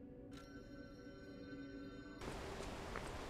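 A soft musical tone hums, then cuts off.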